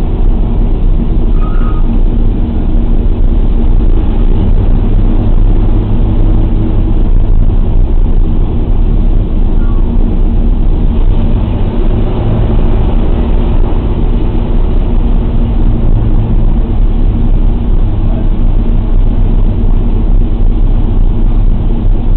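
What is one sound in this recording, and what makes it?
Radial piston engines of a four-engine bomber drone loudly in flight, heard from inside the fuselage.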